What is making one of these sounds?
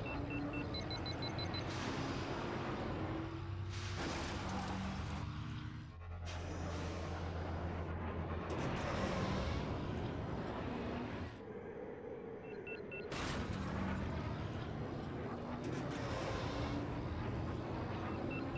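A racing craft's engines roar steadily, rising and falling in pitch.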